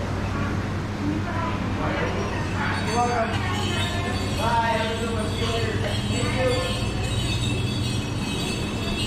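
A man and a woman talk nearby.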